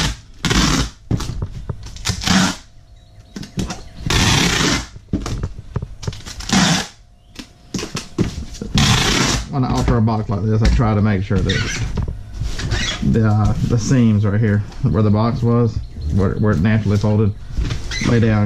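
A cardboard box scrapes and thumps on a table.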